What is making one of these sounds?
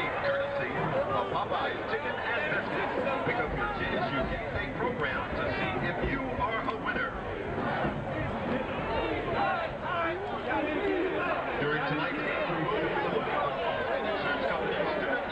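A large crowd chatters and shouts loudly outdoors.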